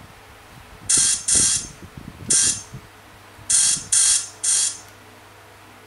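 Short, bright chiming bursts ring out from a mobile game several times.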